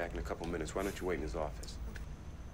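A man speaks briefly and calmly, close to a microphone.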